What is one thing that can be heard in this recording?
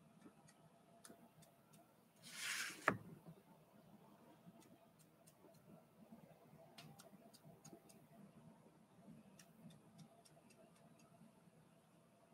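A palette knife scrapes and taps lightly on a painted surface.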